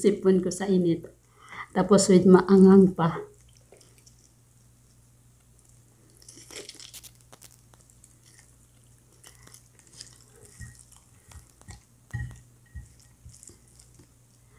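A woman chews and munches on crispy food.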